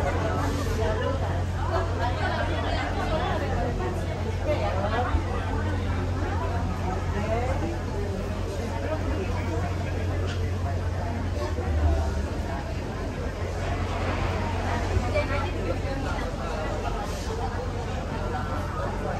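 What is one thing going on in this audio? A crowd of women and men chatter nearby in an echoing enclosed walkway.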